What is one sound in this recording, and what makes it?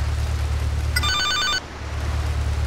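A mobile phone rings with a short electronic tune.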